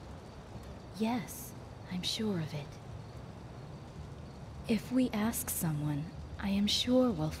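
A second young woman answers calmly.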